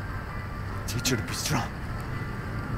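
A man speaks in a low, quiet voice.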